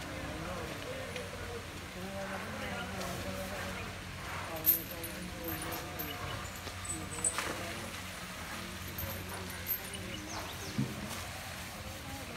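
Several men talk in the distance outdoors.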